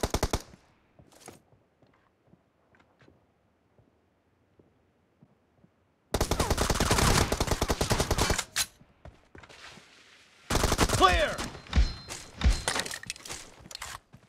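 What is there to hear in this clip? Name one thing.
An automatic rifle fires rapid bursts at close range.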